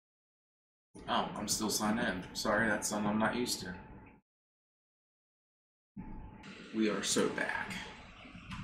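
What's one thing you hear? A man speaks casually into a microphone.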